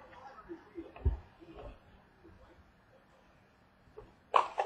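A stack of cards is set down on a table with a soft thud.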